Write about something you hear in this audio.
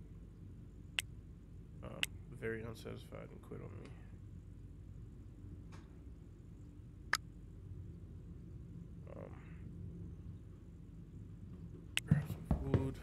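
Soft clicks of a computer game's menu sound now and then.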